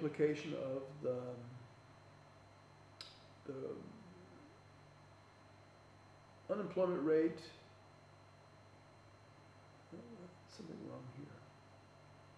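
An elderly man lectures calmly into a microphone, pausing between phrases.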